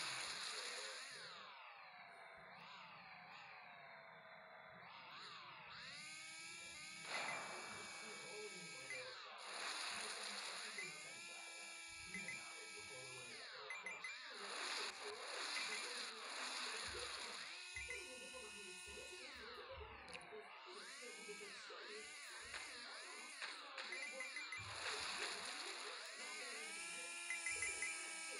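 A video game motorbike engine revs up and down.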